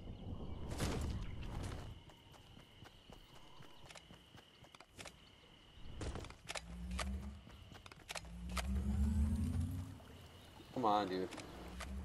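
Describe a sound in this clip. Footsteps patter quickly on grass and pavement.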